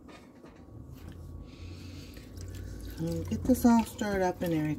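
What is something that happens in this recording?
A whisk stirs and scrapes through a thick soup in a pot.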